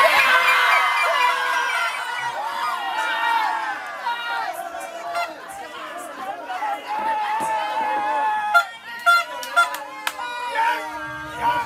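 A group of men and women sing loudly together outdoors.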